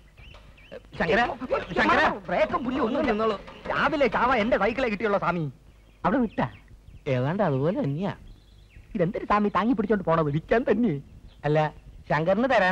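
A man speaks loudly and with animation, close by.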